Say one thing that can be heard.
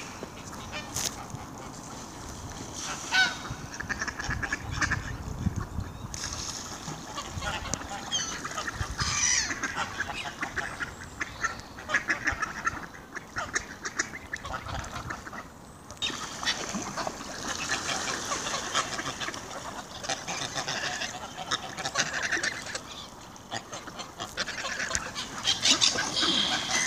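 Ducks and geese splash and paddle in the water.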